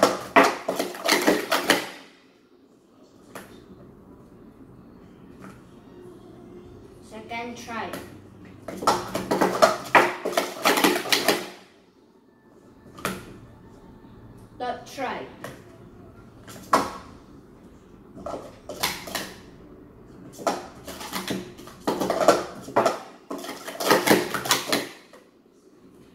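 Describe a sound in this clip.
Plastic cups clatter rapidly as they are stacked and unstacked on a table.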